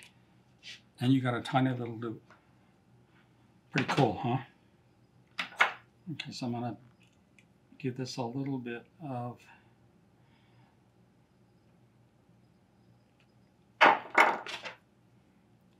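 An elderly man speaks calmly and close by, in short phrases.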